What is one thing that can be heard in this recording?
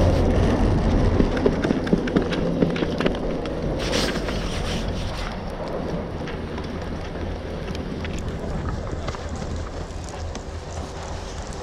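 A snowboard scrapes and hisses over the snow.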